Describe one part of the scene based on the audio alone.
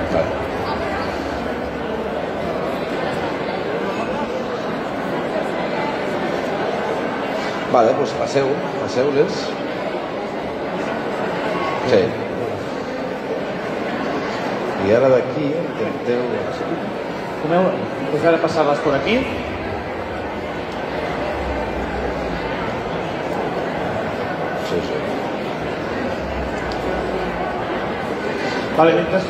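A crowd murmurs steadily.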